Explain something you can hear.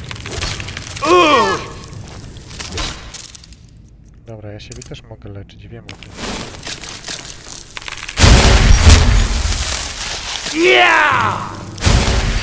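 A creature screeches with sharp rising and falling cries.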